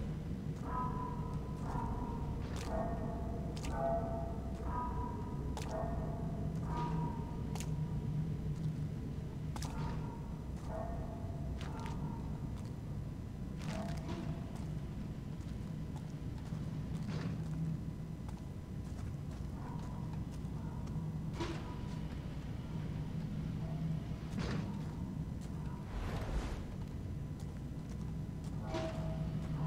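Slow footsteps shuffle across a hard stone floor.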